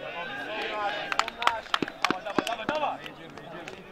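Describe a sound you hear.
Men clap their hands sharply.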